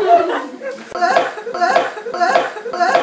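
A woman laughs in rhythmic bursts.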